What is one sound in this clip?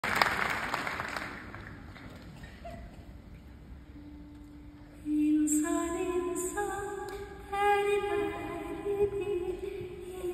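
A grand piano plays softly in a large hall.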